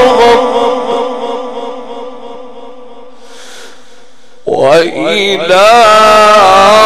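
A man chants a long melodic line into a microphone, his voice echoing through loudspeakers.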